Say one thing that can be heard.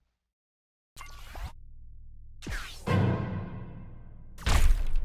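A game blaster fires with a whooshing blast.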